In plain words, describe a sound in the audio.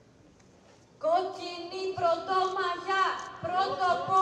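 A man sings loudly nearby.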